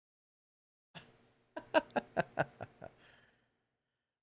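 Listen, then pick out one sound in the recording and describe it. A man chuckles softly close to a microphone.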